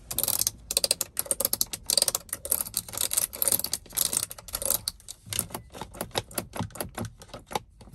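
Air vent slats click as fingernails flick them.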